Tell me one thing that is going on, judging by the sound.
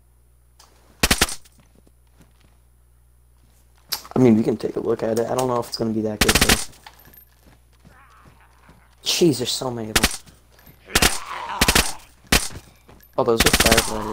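A rifle fires sharp, loud shots, one at a time.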